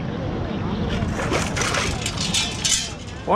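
Water splashes as a scoop is shaken out.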